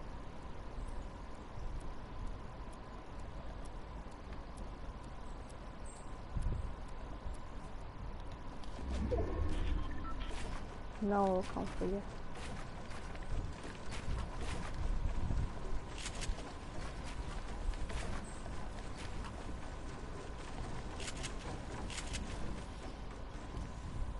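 Footsteps clatter on a roof.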